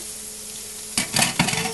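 A hand knocks against a metal sink.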